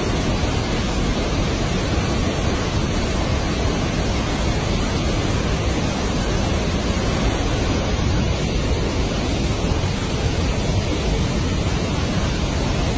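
Floodwater roars loudly as it pours over a weir and churns downstream.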